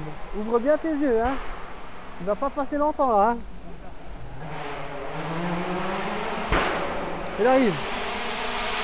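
Distant men shout excitedly outdoors.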